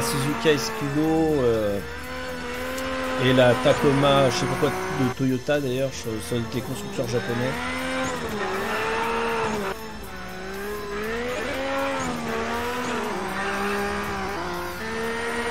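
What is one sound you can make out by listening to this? A racing car engine revs high and changes pitch as it speeds along.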